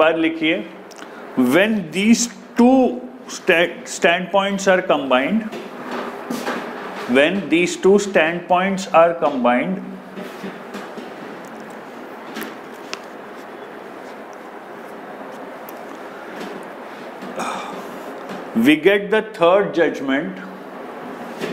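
A man lectures calmly through a clip-on microphone, pausing now and then.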